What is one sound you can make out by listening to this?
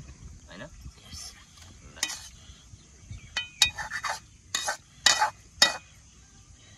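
A ladle scrapes and clinks against metal bowls.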